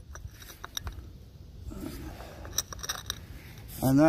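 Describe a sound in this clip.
A ceramic cup clinks against a saucer.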